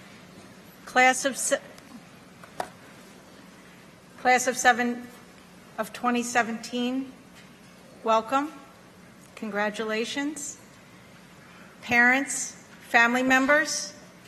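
A woman speaks calmly into a microphone in a large hall, with pauses between phrases.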